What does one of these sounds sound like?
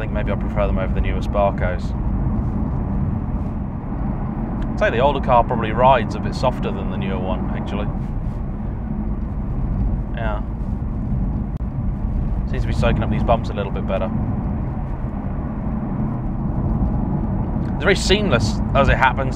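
A car engine hums steadily with road noise inside the cabin.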